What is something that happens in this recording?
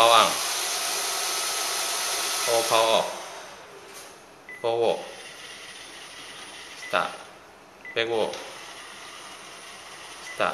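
A cordless phone beeps sharply as its keys are pressed.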